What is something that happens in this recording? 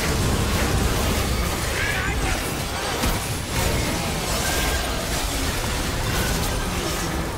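Fantasy battle sound effects crackle, whoosh and clash in quick succession.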